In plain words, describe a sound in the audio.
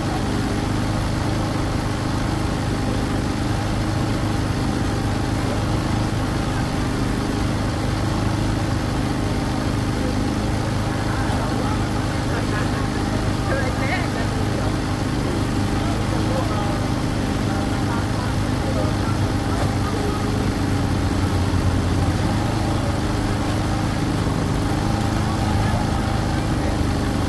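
A crowd chatters steadily outdoors.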